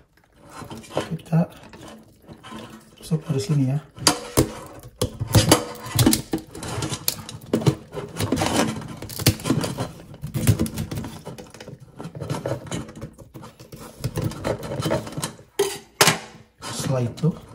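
Scissors snip through crab shell with sharp crunching clicks.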